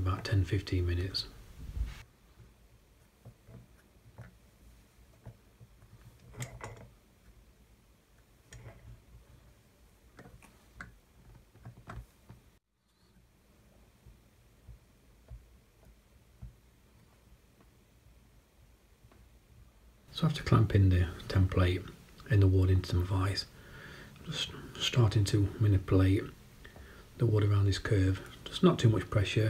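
A thin wooden strip taps and rubs against a metal vise.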